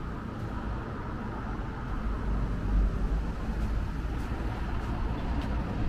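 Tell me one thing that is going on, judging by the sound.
Wind buffets the microphone outdoors with a low, steady rumble.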